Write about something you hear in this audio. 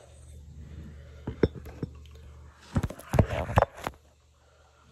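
A phone knocks and bumps against things, close up.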